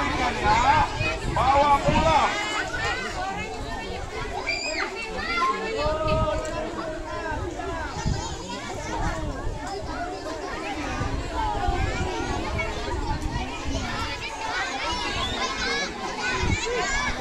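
A large crowd of children and adults chatters and shouts excitedly outdoors.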